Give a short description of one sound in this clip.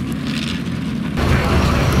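A car engine roars as a car drives across a yard.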